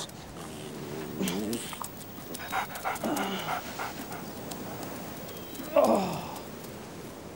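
A man groans and moans in pain close by.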